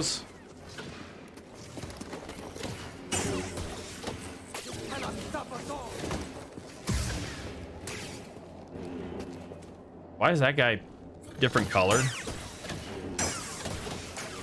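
A lightsaber hums steadily.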